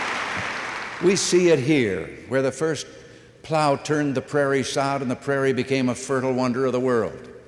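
An elderly man speaks calmly and clearly into a microphone.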